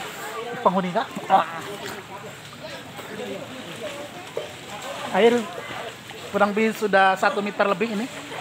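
Floodwater sloshes and splashes around people wading.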